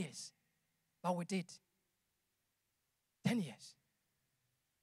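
A man speaks into a microphone in short bursts, heard over loudspeakers in a large echoing hall.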